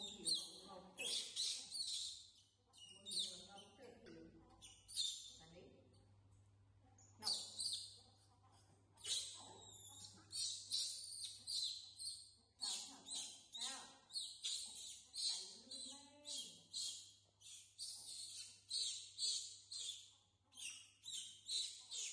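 Young monkeys squeal and shriek in high, repeated bursts.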